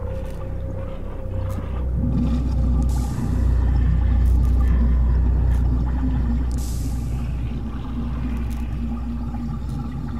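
Footsteps shuffle softly over a littered floor.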